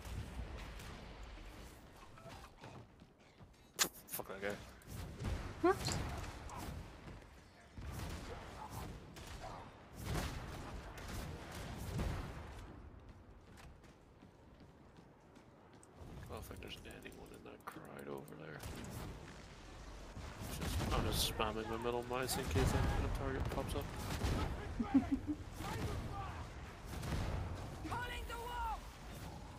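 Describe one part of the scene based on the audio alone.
A young woman talks into a microphone with animation.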